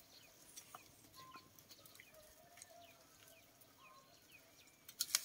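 Chopsticks clink against a pot while stirring.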